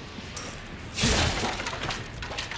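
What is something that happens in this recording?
A wooden crate smashes and splinters.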